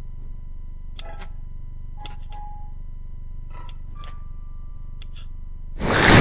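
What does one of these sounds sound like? A metal pick clicks and scrapes inside a door lock.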